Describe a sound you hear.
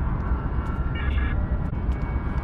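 A short chiming tone sounds as a menu choice is confirmed.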